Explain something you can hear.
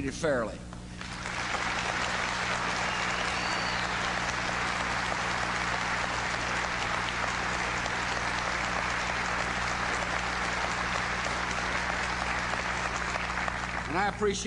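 A large crowd applauds steadily.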